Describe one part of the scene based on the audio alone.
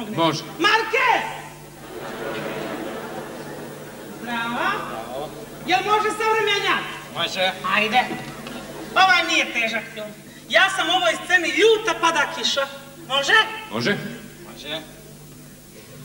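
A man talks with animation on a stage.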